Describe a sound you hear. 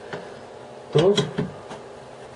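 A tool is set down with a knock on a table.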